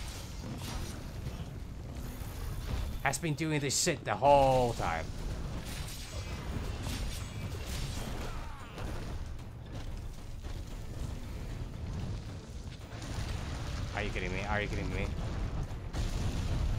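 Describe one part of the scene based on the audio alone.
Fiery blasts boom and crackle.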